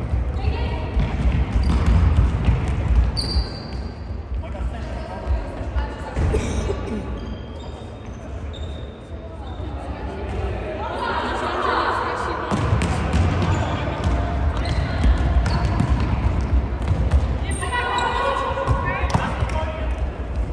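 Sneakers squeak sharply on a hard indoor floor.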